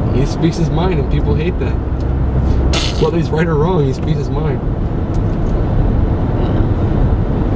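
A car engine hums steadily with road noise.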